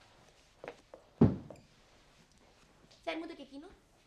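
A body drops onto a soft cushion with a dull thud.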